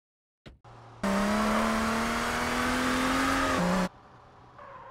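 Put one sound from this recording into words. A car engine revs loudly and its pitch climbs as the car speeds away.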